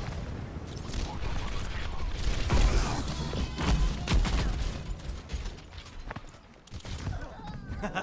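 Gunshots fire in rapid bursts with loud bangs.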